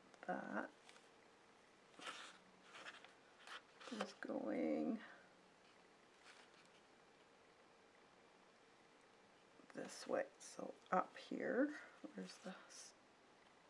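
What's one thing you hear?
A pencil scratches lightly across paper.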